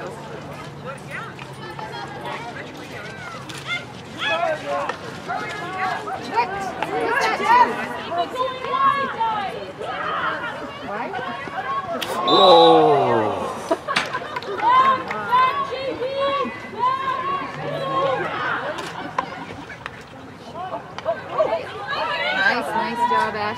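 Young women shout and call out to each other outdoors.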